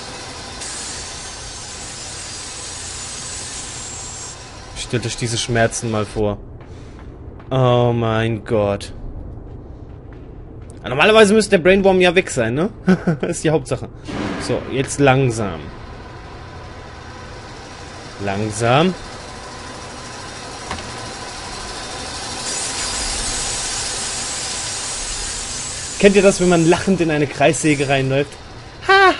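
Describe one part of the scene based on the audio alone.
A spinning saw blade grinds against metal with a hissing shower of sparks.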